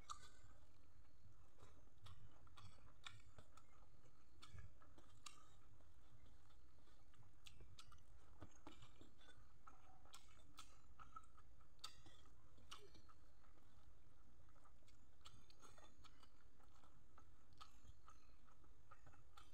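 Fingers squish and mix soft rice on a metal plate.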